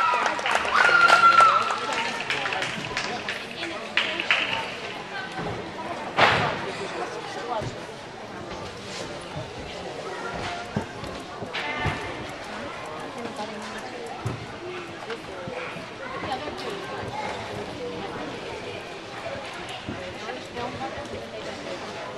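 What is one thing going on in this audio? Girls and women chatter in a large echoing hall.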